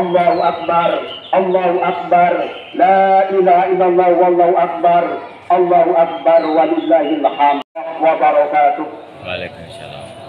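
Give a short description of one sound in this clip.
A man chants a prayer loudly through a loudspeaker.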